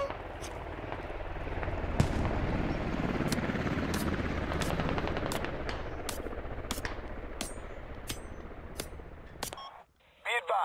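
A smoke grenade hisses steadily, then cuts off.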